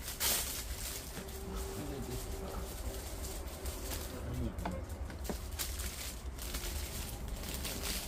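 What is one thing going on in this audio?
Plastic wrap crinkles as a sandwich is unwrapped.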